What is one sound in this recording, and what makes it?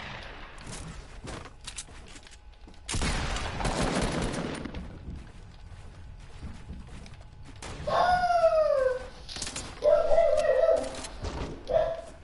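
Wooden walls are quickly built with hollow knocks and clatter.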